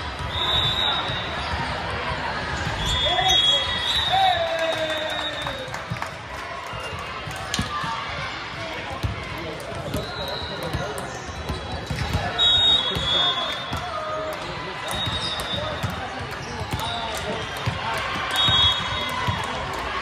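A crowd of spectators chatters throughout.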